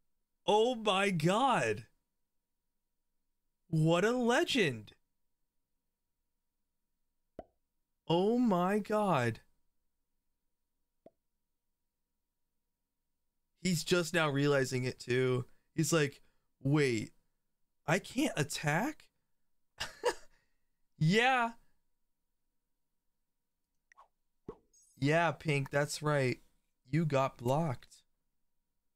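A young man speaks with animation into a microphone, in short bursts.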